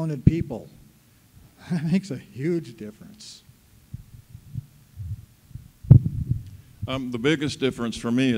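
A middle-aged man speaks into a microphone in a conversational tone, heard through a loudspeaker.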